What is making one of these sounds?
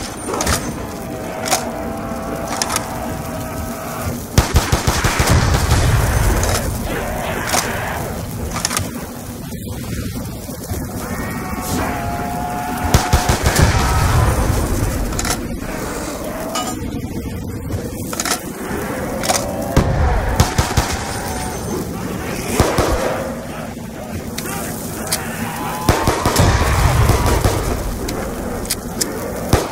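Guns fire in quick bursts of loud shots.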